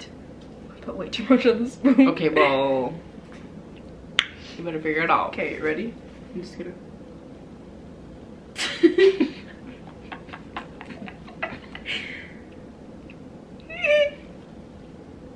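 A young woman talks and laughs close to a microphone.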